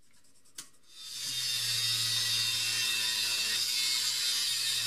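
An angle grinder whines loudly as it cuts into metal.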